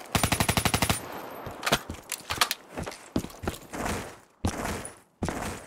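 A rifle magazine clicks as it is reloaded.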